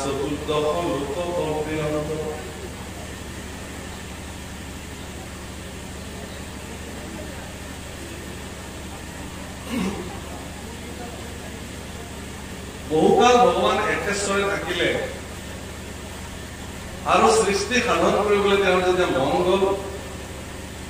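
A man speaks in bursts through a microphone and loudspeaker.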